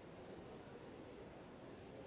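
Visitors murmur quietly in a large echoing hall.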